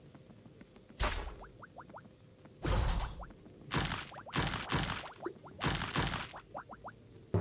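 Bright game chimes and whooshes ring out as rewards are collected.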